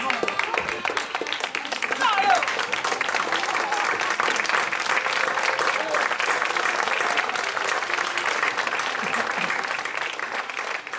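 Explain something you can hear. An audience claps and applauds steadily outdoors.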